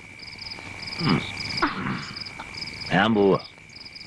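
A man groans and cries out in distress close by.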